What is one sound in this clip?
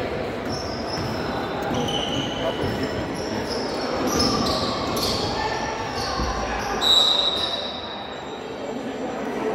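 A crowd of spectators murmurs and calls out in an echoing hall.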